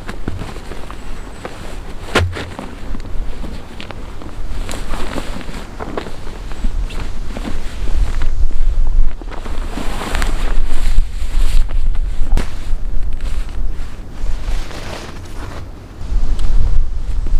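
Nylon fabric rustles as a pack is stuffed and handled.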